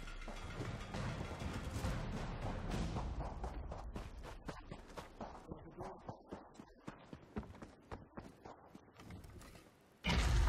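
Footsteps run quickly over dirt and stone.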